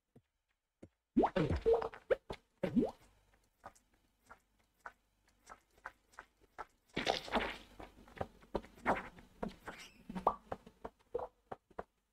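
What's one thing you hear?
Short electronic game sounds click and thud.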